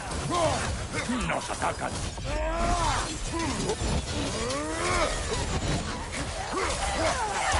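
Flames whoosh and roar.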